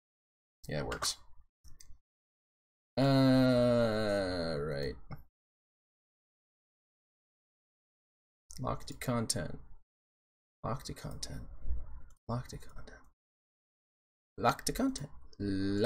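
A man talks casually and close to a microphone, in short bursts with pauses.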